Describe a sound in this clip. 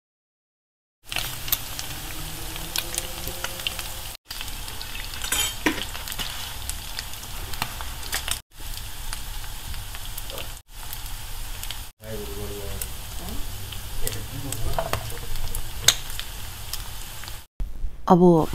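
Meat sizzles in a hot frying pan.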